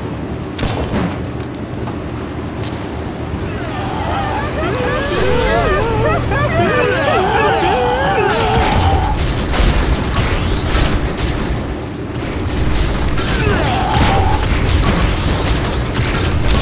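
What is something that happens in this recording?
Game tank cannons fire with sharp bangs.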